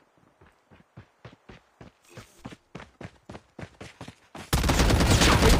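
Footsteps patter quickly and evenly on hard ground.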